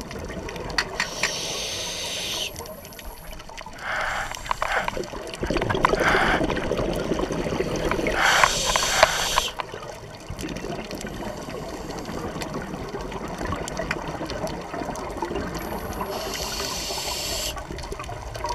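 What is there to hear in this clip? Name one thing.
Bubbles from a scuba diver's regulator gurgle and rush upward underwater.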